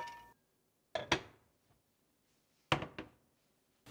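A pot knocks against a stovetop.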